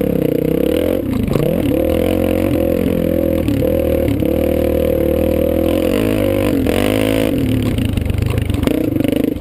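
A dirt bike engine revs loudly and rises and falls in pitch.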